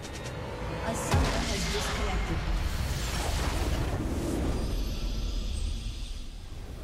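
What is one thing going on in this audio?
A loud magical crackling burst sounds, then fades away.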